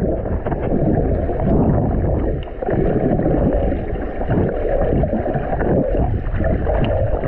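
Water churns and rumbles in a muffled rush underwater.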